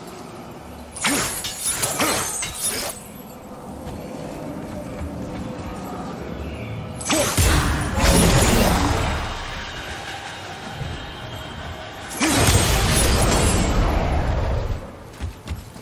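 An axe strikes hard with heavy, ringing blows.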